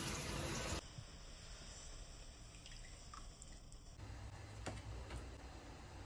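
Salt pours into a pot of water.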